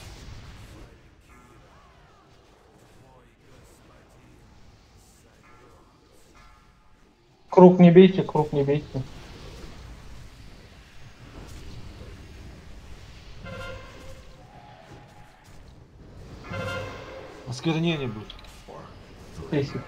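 Fantasy game spell effects chime and whoosh in a busy battle.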